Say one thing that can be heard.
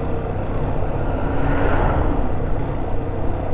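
A tanker truck passes in the opposite direction.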